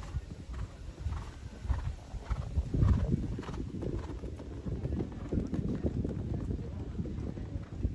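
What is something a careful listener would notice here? Hooves thud rhythmically on soft sand as a horse canters.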